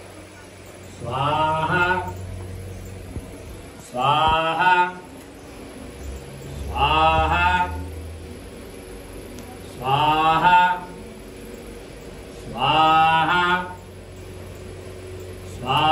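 A man chants in short, repeated phrases.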